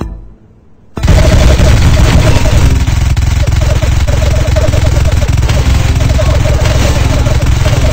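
A paintball marker fires in rapid bursts.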